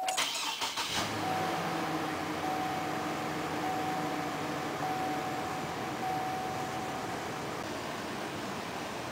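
A car engine starts and idles steadily.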